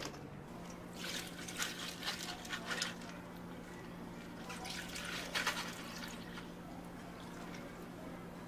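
Milk pours and splashes into cups.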